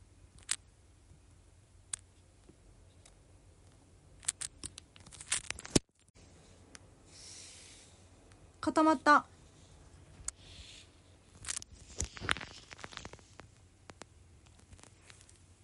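Fingers tap and rub against a phone close up.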